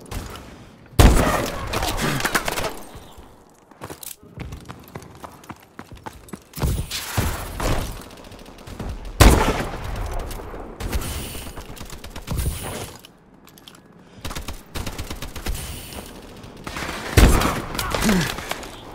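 A rifle fires loud, sharp shots that echo briefly.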